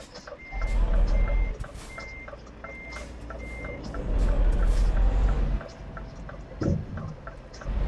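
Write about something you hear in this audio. A truck engine rumbles steadily as the truck drives along a road.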